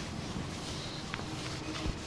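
A cloth wipes across a blackboard.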